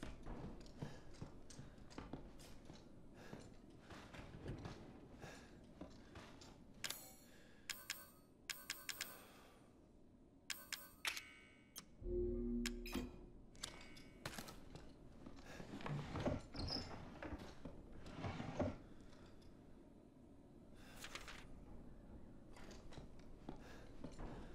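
Footsteps thud softly on a creaking wooden floor.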